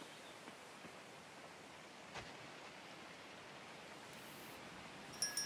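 Footsteps patter softly on dirt.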